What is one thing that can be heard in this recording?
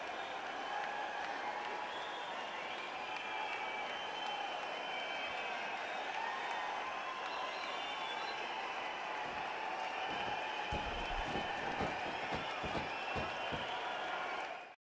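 A large crowd cheers and roars steadily in a big arena.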